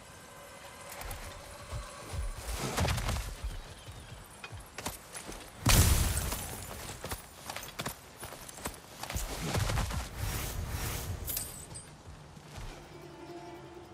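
Heavy footsteps crunch on gravel.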